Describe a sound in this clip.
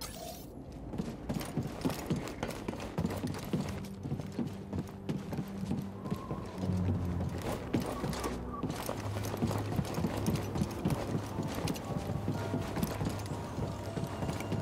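Footsteps patter quickly on a hard metal floor.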